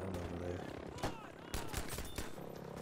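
Gunshots crack sharply in a video game.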